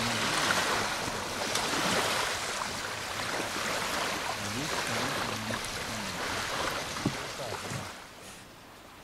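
Wind blows over choppy water lapping nearby.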